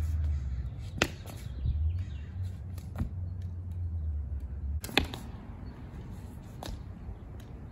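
Wooden rattan sticks clack together in sharp strikes.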